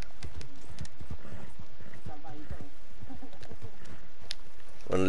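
Horse hooves thud on a dirt trail.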